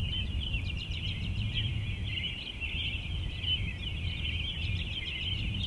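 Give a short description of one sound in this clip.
Rain falls steadily on wet pavement outdoors.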